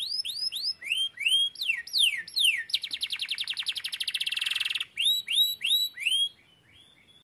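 A canary sings loudly close by in rapid swooping notes and fast trills.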